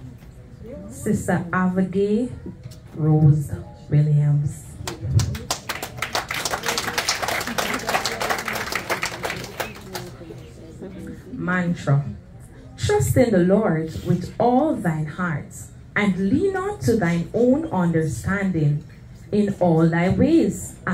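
A woman speaks into a microphone over loudspeakers in a large echoing hall.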